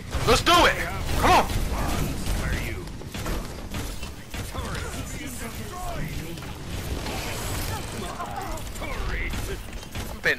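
A video game weapon fires rapid bursts of energy.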